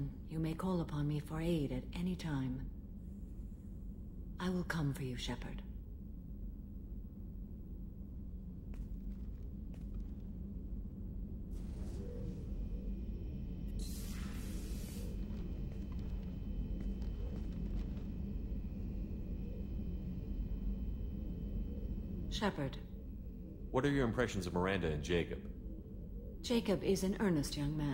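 A woman speaks calmly in a low, smooth voice.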